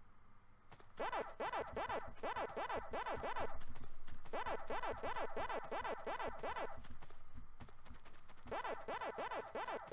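A game character chomps rapidly in a quick, repeating beeping rhythm.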